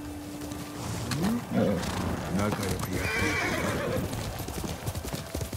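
A horse snorts and whinnies.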